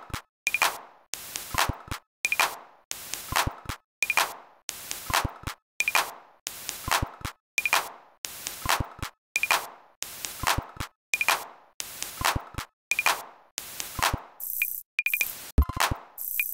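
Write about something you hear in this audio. Electronic drum beats play in a steady looping rhythm.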